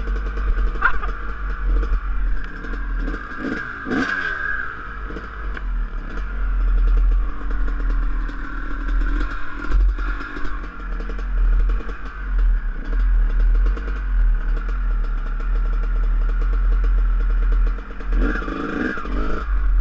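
A dirt bike engine drones and revs close by.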